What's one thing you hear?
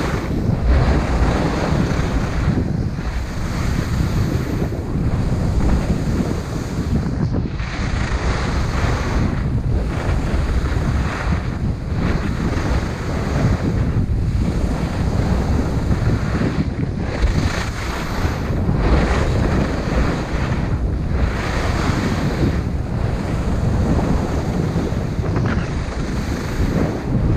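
Wind rushes loudly past the skier.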